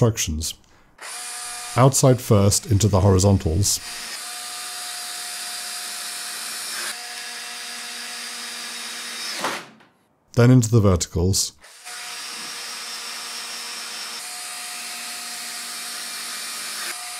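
A power drill whirs steadily as it drives screws into wood.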